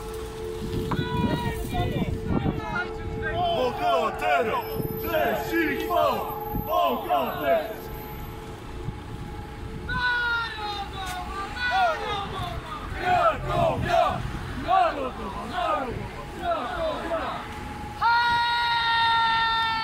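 A group of young men chant and sing loudly outdoors.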